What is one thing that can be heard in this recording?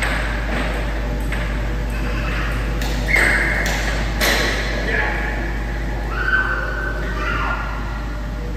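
A small ball bounces with light clicks on a hard floor.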